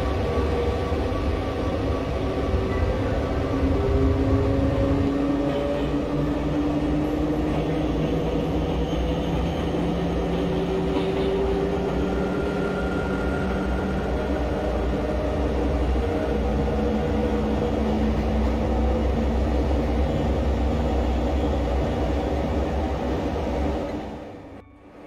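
An electric train engine hums steadily with a shifting whine as it runs.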